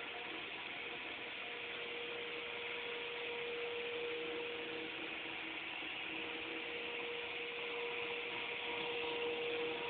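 A floor scrubbing machine whirs and hums steadily.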